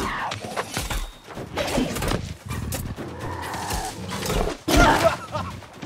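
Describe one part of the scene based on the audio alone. A blade strikes a creature with sharp hits.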